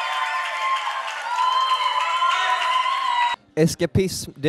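A woman sings with the band.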